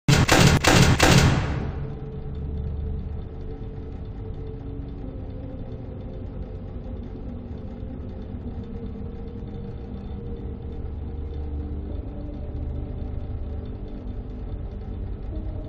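A fan whirs with a steady low hum.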